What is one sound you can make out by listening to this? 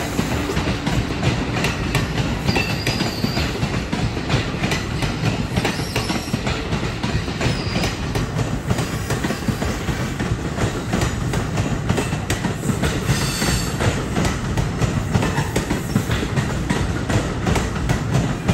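A passenger train rumbles past close by on the tracks.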